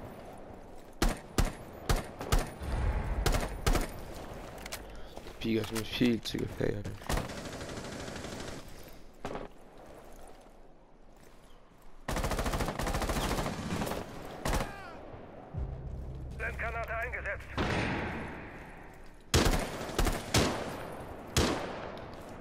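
Sharp gunshots crack in short bursts.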